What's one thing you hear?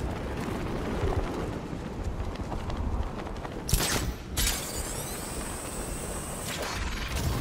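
Wind rushes steadily past during a glide through the air.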